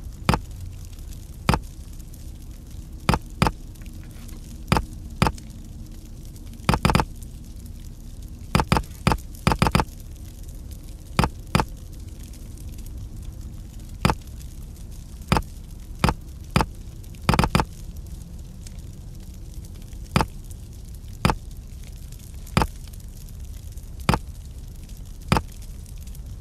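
Small metal pieces click and clack as they slide into place.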